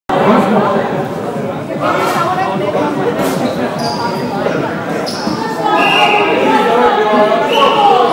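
Young players shout and chatter in a large echoing hall.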